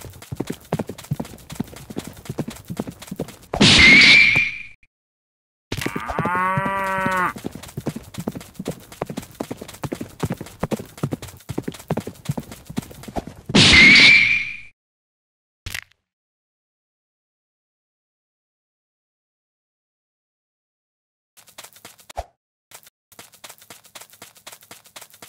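Quick footsteps patter on soft ground.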